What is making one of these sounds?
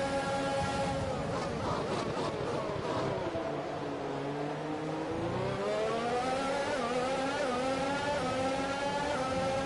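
A racing car engine falls sharply in pitch while downshifting, then climbs again.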